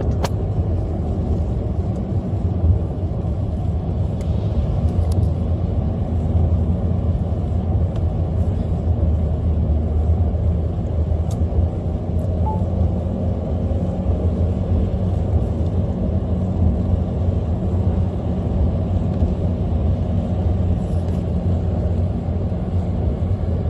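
Windshield wipers sweep across the glass.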